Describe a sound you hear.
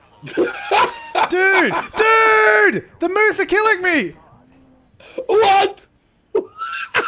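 A second young man laughs loudly through a microphone.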